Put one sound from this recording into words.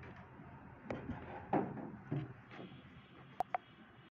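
A pen taps and squeaks on a board.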